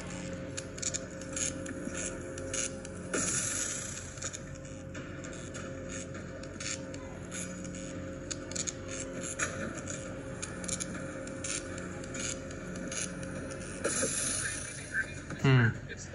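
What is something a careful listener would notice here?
Electric zaps crackle from a small tablet speaker.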